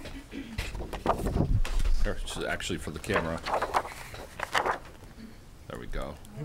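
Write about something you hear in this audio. Paper rustles as a man handles sheets.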